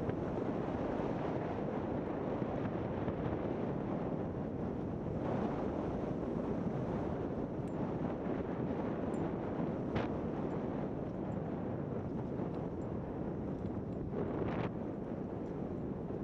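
A snowmobile engine roars steadily.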